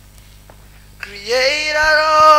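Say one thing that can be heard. A woman begins singing loudly through a microphone.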